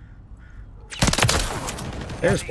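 Gunfire rattles in a short, loud burst.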